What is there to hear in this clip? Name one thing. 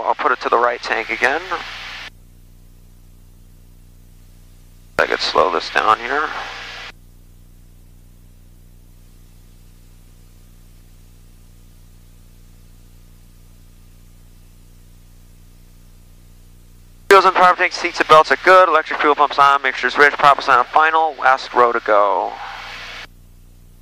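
A man speaks calmly through a headset intercom in short bursts.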